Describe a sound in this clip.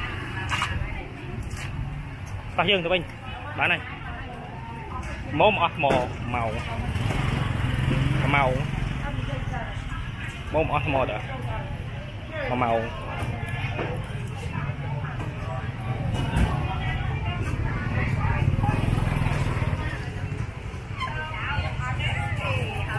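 Men and women chatter nearby in a busy outdoor market.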